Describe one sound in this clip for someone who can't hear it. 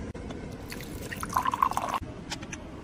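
Tea trickles into a small cup.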